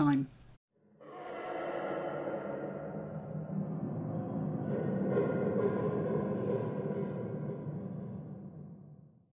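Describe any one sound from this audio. A winged creature lets out a long, rasping screech.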